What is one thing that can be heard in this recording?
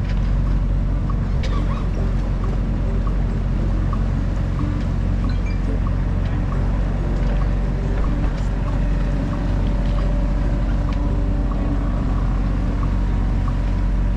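A boat's motor hums steadily at a low pitch.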